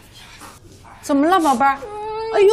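An elderly woman speaks calmly close by.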